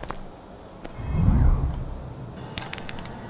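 A magical whoosh swells up and fades.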